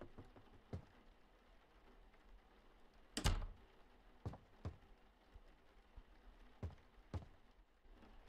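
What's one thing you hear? Footsteps thud slowly on a floor.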